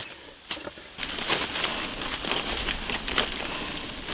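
Dry leaves and twigs crunch underfoot.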